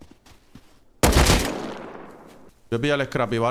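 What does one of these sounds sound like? A gunshot cracks loudly and echoes away.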